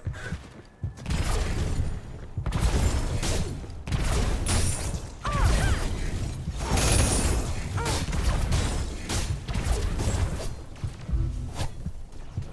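Blades whoosh and clash in a rapid fight, with heavy impacts.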